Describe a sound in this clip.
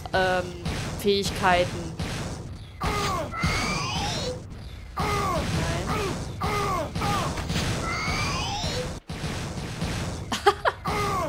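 A video game weapon fires again and again, each shot with a falling, swooping tone.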